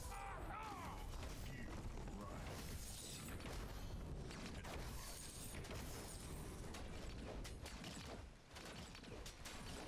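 Weapons clash and strike in a close fight.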